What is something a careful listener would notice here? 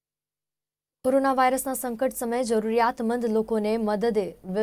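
A young woman reads out the news clearly into a microphone.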